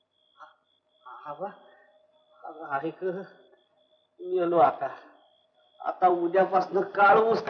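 A man speaks anxiously and gasps.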